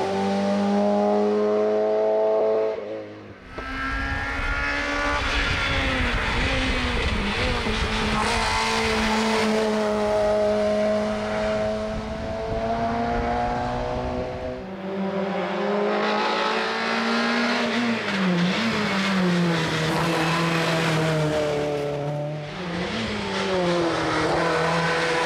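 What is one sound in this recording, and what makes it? A race car engine revs hard, roaring up and down in pitch as it speeds past.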